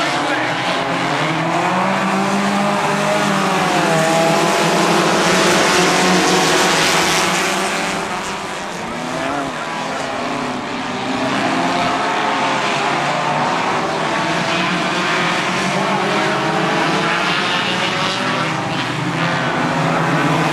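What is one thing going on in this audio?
Many race car engines roar loudly and rise and fall in pitch as cars race around a track.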